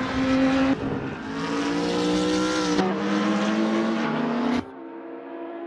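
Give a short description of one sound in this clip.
Racing car engines roar and whine at high revs.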